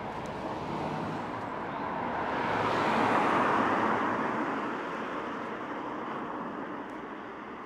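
A car drives past on a nearby road.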